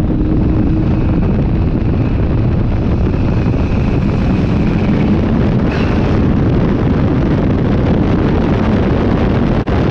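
Wind buffets loudly in an open cockpit.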